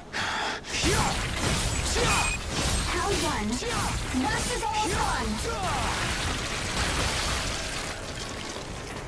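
Blades slash and clash against a monster in quick bursts.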